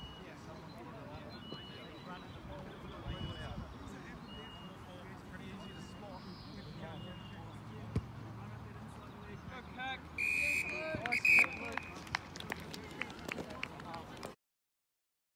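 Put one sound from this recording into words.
Distant players shout across an open field.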